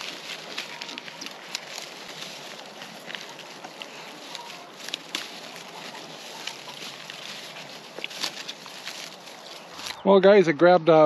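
Pigs crunch and chew on branches.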